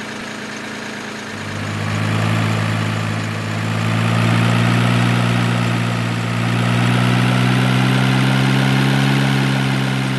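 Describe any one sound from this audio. A heavy truck's diesel engine rumbles steadily and revs up as it drives.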